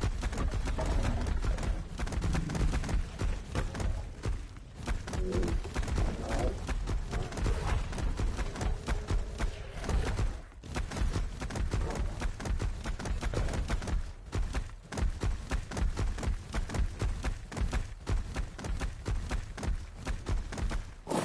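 Heavy footsteps of a large creature thud steadily on the ground.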